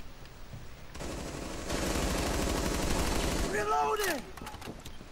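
A machine gun fires a long rapid burst.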